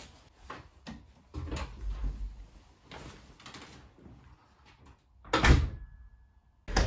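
A door opens and then slams shut.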